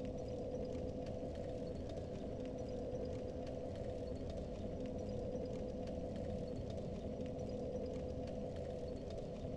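Armored footsteps clank on stone at a steady walking pace.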